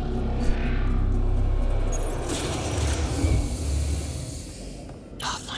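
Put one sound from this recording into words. A heavy metal door slides open with a deep rumble.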